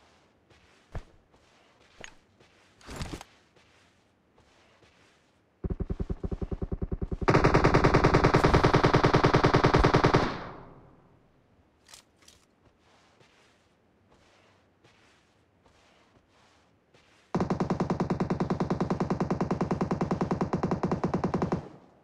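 Dry grass rustles as a soldier crawls through it.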